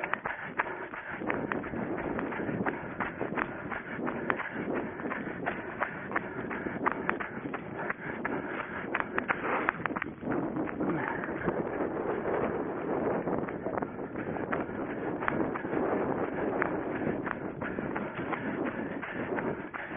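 A runner's footsteps thud and crunch quickly over dry leaves and grass.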